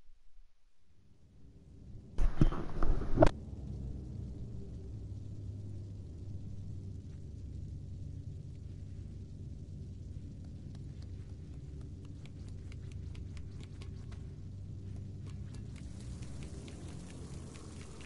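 A low ambient drone hums steadily.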